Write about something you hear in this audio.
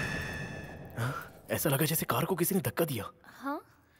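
A man talks urgently up close.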